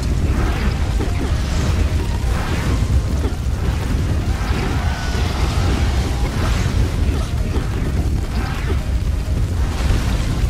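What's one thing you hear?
Fantasy battle sound effects clash and boom.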